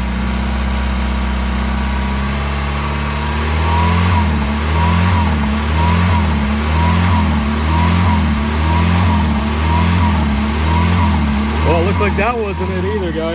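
A car engine idles close by with a steady low rumble that starts to surge and dip in a regular rhythm.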